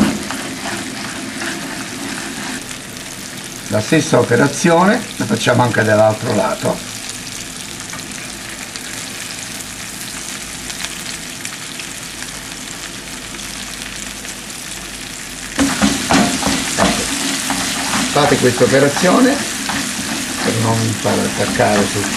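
Food sizzles and crackles as it fries in hot oil.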